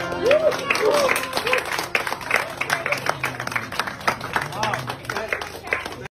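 A group of people sing together loudly.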